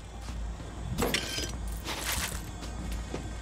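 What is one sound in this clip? A metal chest clanks open.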